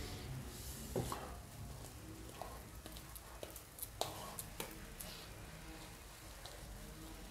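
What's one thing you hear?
Sharp knocks and taps sound against a door frame.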